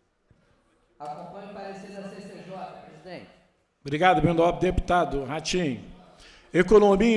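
A man speaks over loudspeakers in a large echoing hall.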